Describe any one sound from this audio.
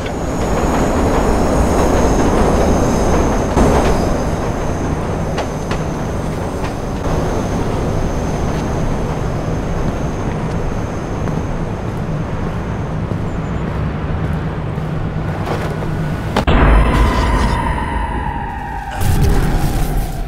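A subway train rumbles along rails.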